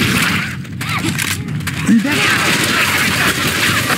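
Zombies snarl and growl nearby.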